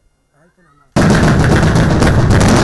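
A blast rips through a building with a loud roar of falling debris.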